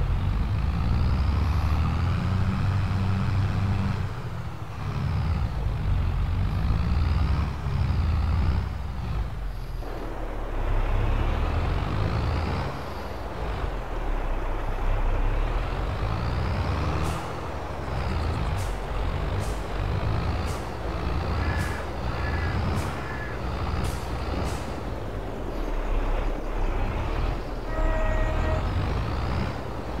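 A tractor engine rumbles steadily and rises and falls as it drives.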